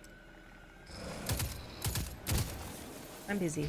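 A gun fires several sharp shots.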